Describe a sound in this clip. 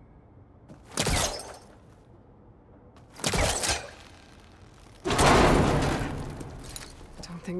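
A bow-like launcher fires with a sharp whoosh.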